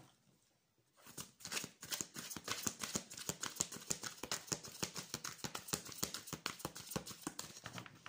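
Playing cards riffle and flutter rapidly as they are shuffled close by.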